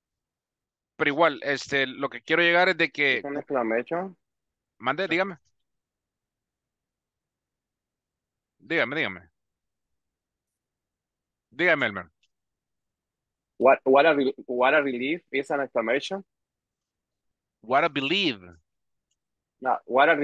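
A man speaks calmly through an online call microphone, in bursts with pauses.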